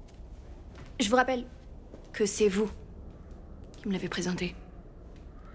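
A young woman answers in short phrases.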